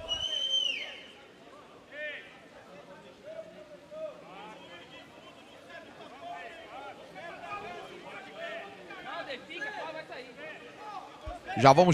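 Young men call out to each other nearby outdoors.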